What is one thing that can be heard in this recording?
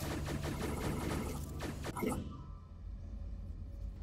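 A teleporter whooshes briefly.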